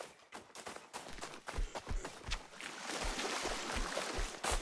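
Footsteps patter quickly on soft ground.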